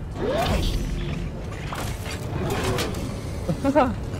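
A lightsaber hums and buzzes.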